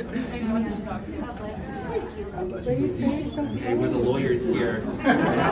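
Several women and men talk over each other nearby.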